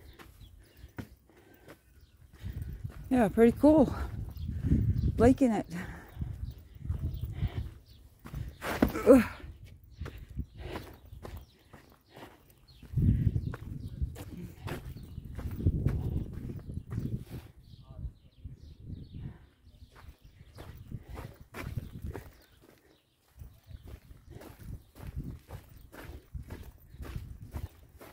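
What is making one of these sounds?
Footsteps crunch on dry, gritty ground.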